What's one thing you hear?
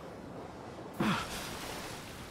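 A swimmer breaks the surface with a splash.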